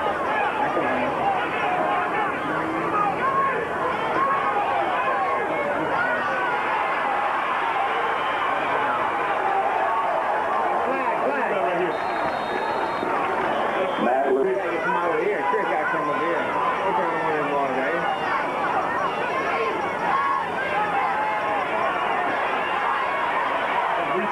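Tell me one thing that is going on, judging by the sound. A large crowd cheers and shouts in the stands outdoors.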